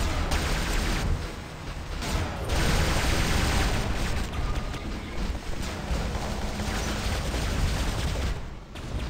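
Loud explosions and laser blasts boom and crackle.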